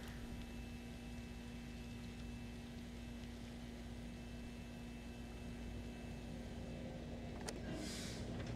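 A metal button clicks as it is pressed.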